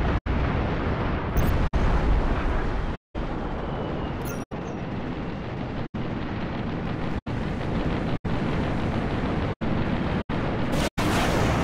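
Laser blasts fire in rapid bursts.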